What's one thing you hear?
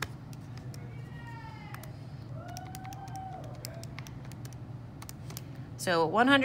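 Calculator keys click softly as they are pressed.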